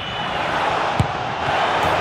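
A football is struck with a sharp thud.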